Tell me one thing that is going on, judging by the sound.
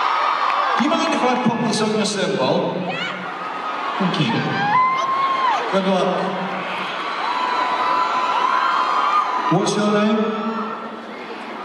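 A man sings into a microphone over the music.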